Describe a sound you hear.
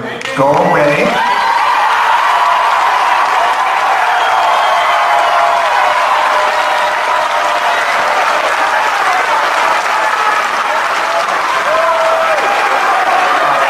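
A crowd cheers and claps loudly.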